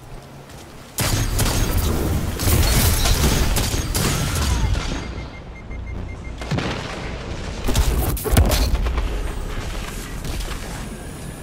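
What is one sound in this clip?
Gunfire and energy blasts crackle and boom loudly.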